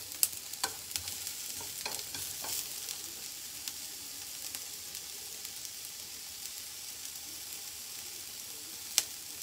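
Vegetables sizzle softly in a frying pan.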